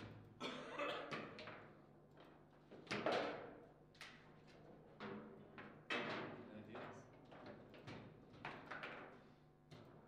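Rods of a table football game rattle and clack as players spin them.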